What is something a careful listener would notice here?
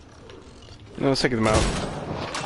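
Gunfire bursts out in rapid, loud shots.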